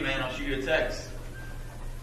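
A young man speaks with animation nearby.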